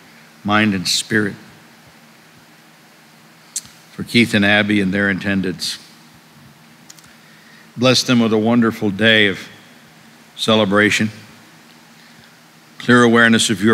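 A middle-aged man reads aloud calmly into a microphone, in phrases with pauses, in a slightly echoing room.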